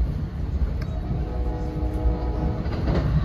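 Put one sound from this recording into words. A railroad crossing bell rings briefly.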